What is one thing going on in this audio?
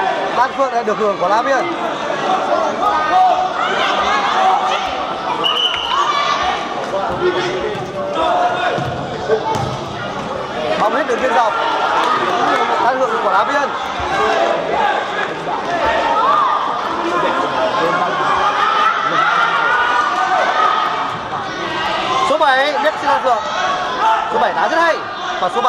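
A crowd of young spectators shouts and cheers in a large echoing hall.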